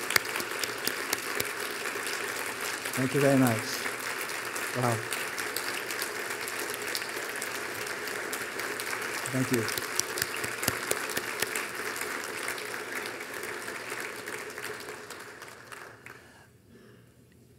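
An audience applauds loudly in a large hall, then the clapping fades away.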